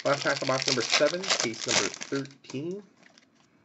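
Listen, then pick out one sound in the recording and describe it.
A foil wrapper crinkles and tears loudly as it is ripped open.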